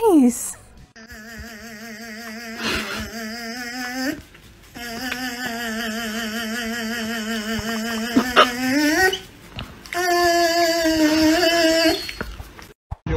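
A puppy whines and yelps in a high voice.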